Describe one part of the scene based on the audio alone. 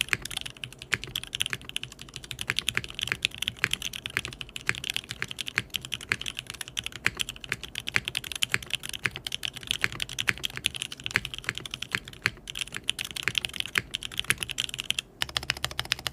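Fast typing clatters on a mechanical keyboard, close up.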